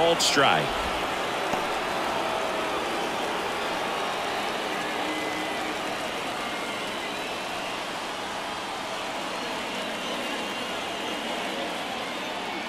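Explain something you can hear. A large crowd murmurs and chatters steadily in an open stadium.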